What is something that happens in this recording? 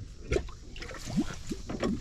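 Water sloshes and splashes in a tank.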